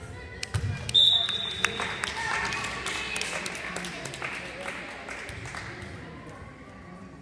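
Young players and spectators cheer and shout in an echoing hall.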